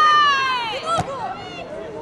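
A ball is kicked with a dull thump.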